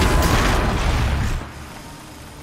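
A machine explodes with a loud, rumbling blast.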